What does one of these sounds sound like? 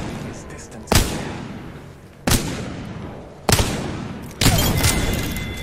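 Gunshots fire in loud single bangs.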